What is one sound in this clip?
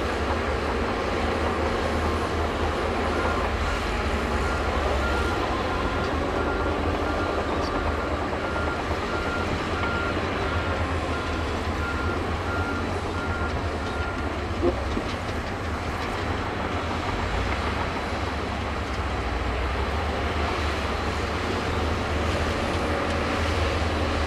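A bulldozer's diesel engine rumbles steadily nearby.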